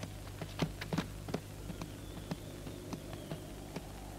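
A horse's hooves clop slowly on dirt.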